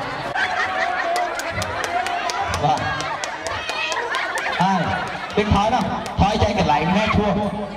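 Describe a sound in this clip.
Women laugh and shout close by.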